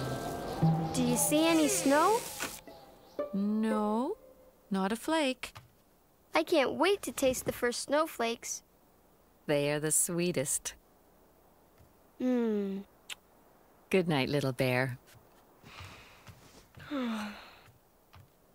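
A woman speaks gently and warmly.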